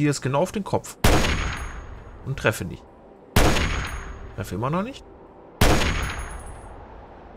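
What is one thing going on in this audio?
A rifle fires loud shots that echo and fade.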